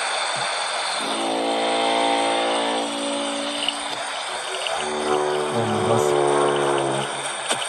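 A loud siren wails in long, wavering blasts.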